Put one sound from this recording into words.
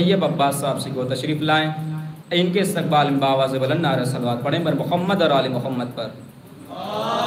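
A young man chants loudly into a microphone in an echoing room.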